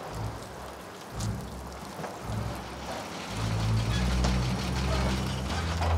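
A car engine rumbles as a car pulls up.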